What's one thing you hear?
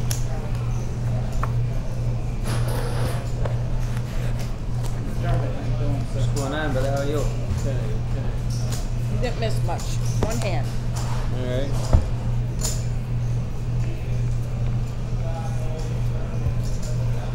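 Men talk quietly around a table.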